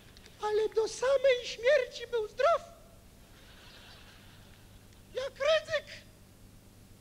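A man sings out in a loud, exaggerated voice through a microphone in a large hall.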